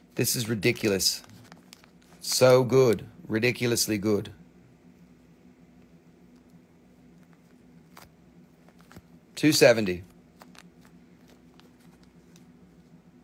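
A plastic bag crinkles softly as it is handled.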